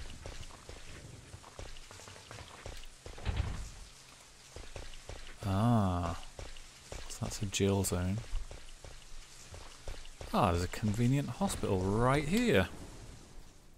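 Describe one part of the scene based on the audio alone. Zombies moan and groan nearby.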